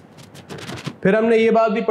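A man speaks clearly and with animation close to a microphone.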